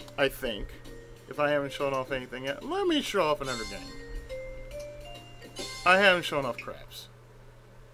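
A game menu gives short electronic beeps as options are picked.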